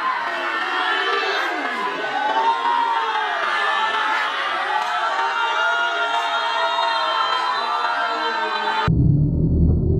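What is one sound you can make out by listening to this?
A crowd of young men shouts and cheers excitedly nearby.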